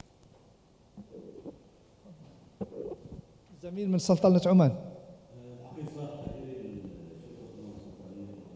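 A man speaks into a microphone in a large hall.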